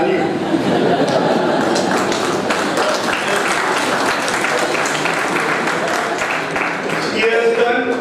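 A small audience claps.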